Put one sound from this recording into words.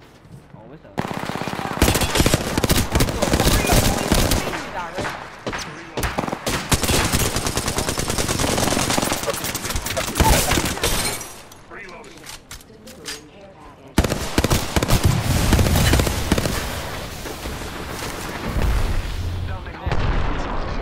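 Rapid gunfire rings out in loud bursts.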